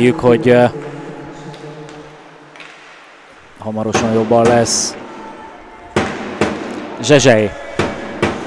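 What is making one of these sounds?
Men shout nearby in an echoing rink.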